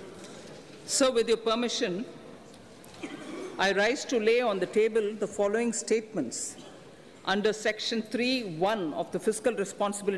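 A middle-aged woman reads out a speech through a microphone.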